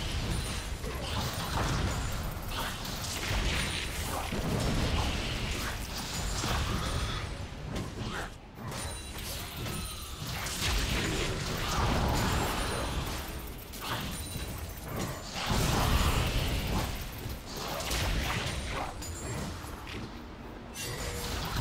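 Game minions clash with metallic hits.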